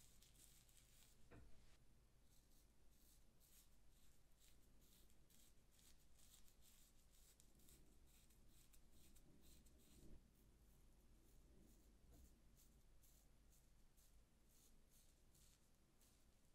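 A razor scrapes through stubble on a scalp in short strokes.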